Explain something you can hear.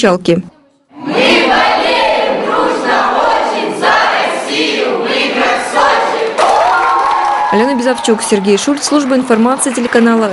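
A group of young men and women shout and cheer together loudly.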